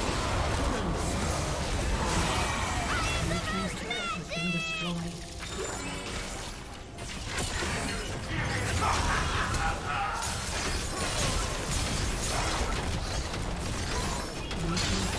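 Sharp game hits and blasts strike again and again.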